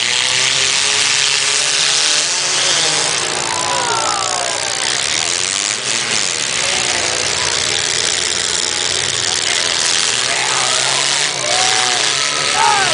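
A large crowd cheers and shouts in the open air.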